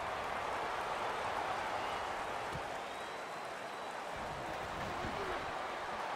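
A stadium crowd roars steadily.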